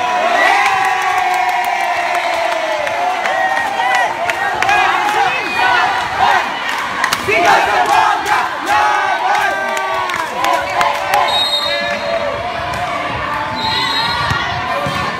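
Young players and onlookers shout and cheer outdoors.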